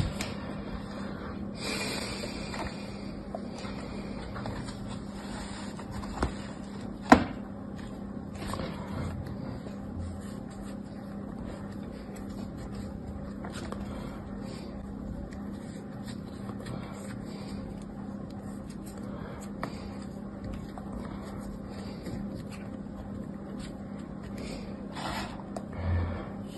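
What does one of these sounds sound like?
Sand rustles softly as fingers dig through it.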